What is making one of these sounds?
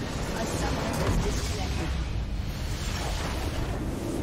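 A large structure in a video game explodes and shatters.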